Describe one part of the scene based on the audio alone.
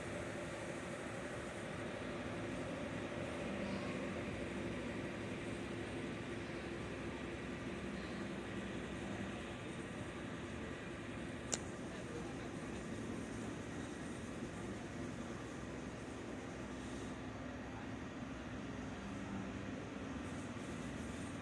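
A jet airliner's engines hum steadily, muffled through glass.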